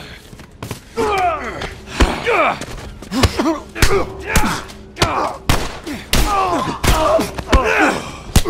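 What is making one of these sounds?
A man groans and shouts in pain.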